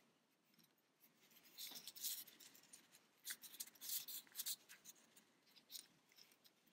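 Fingers rustle and rub against soft yarn close by.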